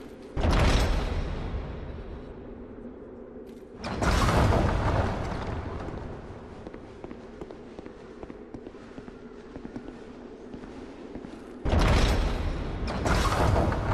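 Footsteps thud on a creaking wooden floor.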